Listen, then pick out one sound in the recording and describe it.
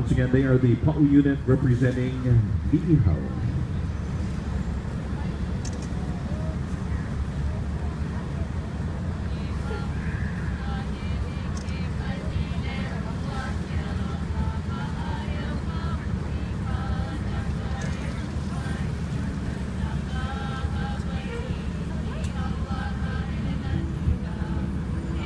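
A fire engine idles with a low, steady rumble.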